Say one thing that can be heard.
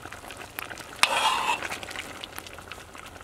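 A metal spoon scrapes and clinks in a pot.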